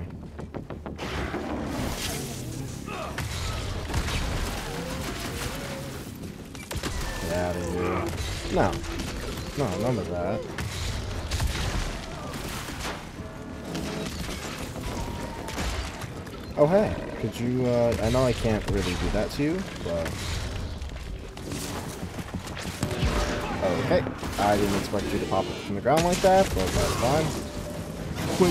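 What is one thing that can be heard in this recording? Blows and gunshots of a fierce fight ring out repeatedly.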